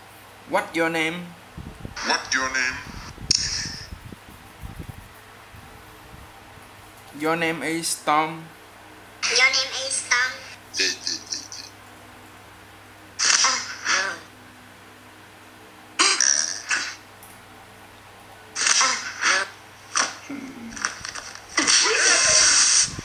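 A tablet game plays short cartoonish jingles and sound effects through a small speaker.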